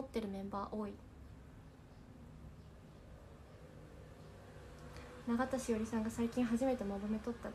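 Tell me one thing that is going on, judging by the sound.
A young woman speaks close by, calmly and cheerfully.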